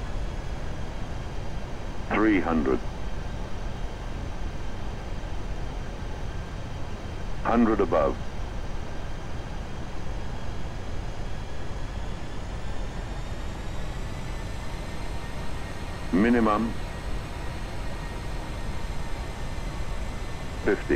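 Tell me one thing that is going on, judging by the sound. Jet engines hum with a steady low roar.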